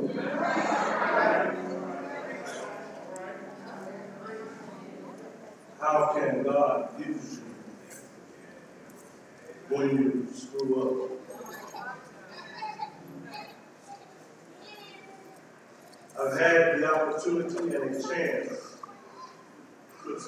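A man speaks over loudspeakers in bursts, echoing in a large hall.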